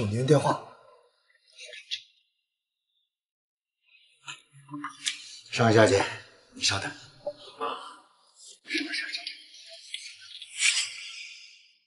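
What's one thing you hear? A young man speaks.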